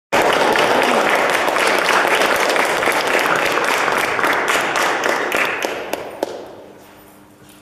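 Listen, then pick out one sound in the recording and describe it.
An audience applauds in an echoing hall, the clapping fading out.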